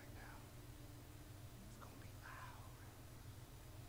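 A man speaks in a low, quiet voice.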